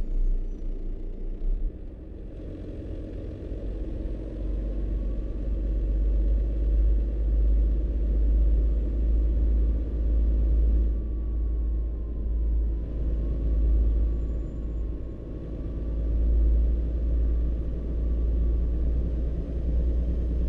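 A truck engine drones steadily with a low rumble, rising and falling as it drives.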